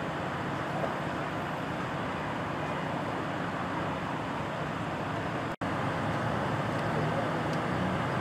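Vehicle engines idle with a steady rumble outdoors.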